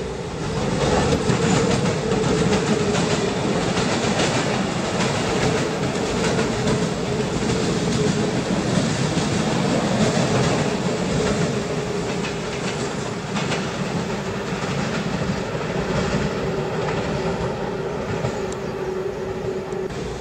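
Wheels of an electric commuter train rumble and click over rail joints.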